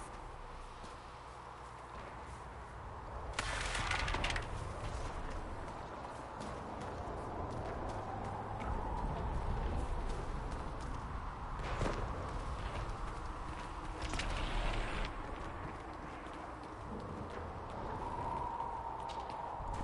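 Wind howls in a low, steady rumble.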